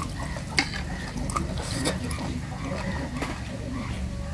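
A hand squishes and mixes rice on a plate.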